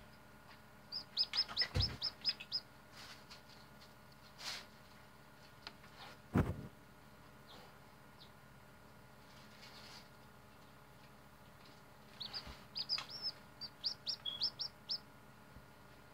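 A hatching chick peeps in quick, high bursts from inside its egg.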